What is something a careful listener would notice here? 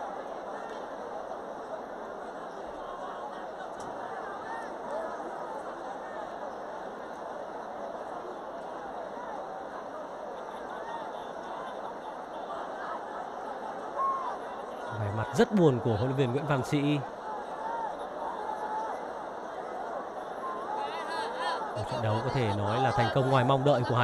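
A stadium crowd chants and cheers steadily in the distance.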